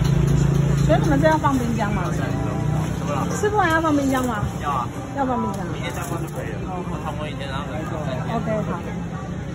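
A young man calls out loudly in a sing-song voice nearby.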